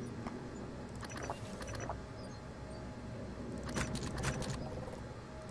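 Game menu clicks and beeps sound briefly.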